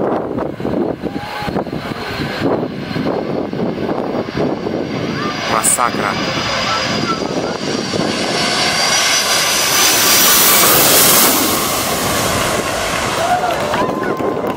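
A jet airliner roars low overhead, growing louder and then fading.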